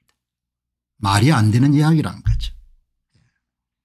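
An older man speaks calmly and close to a microphone.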